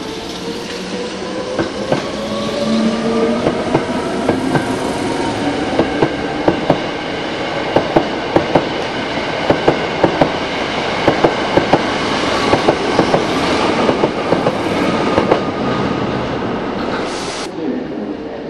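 Electric traction motors whine on a passing train.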